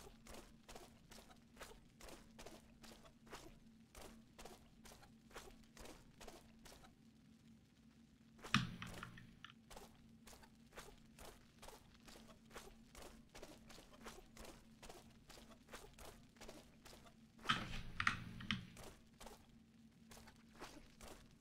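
Footsteps crunch steadily on a gritty floor.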